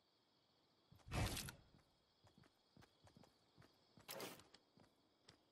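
A wooden wall clatters into place with a loud knock.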